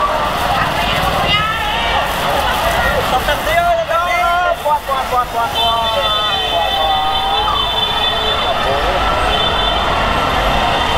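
A crowd of young people shouts and cheers excitedly nearby.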